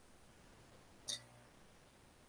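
A small object knocks sharply once close by.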